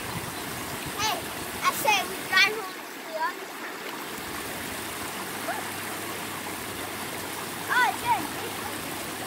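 A young boy shouts and talks excitedly nearby.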